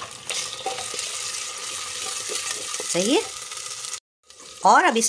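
Food sizzles and hisses loudly in hot oil.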